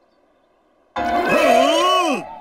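A puppet creature lets out a loud, wavering, warbling cry.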